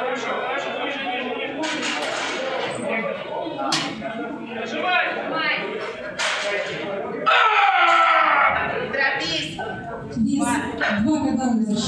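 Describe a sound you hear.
Several men shout loud encouragement in an echoing hall.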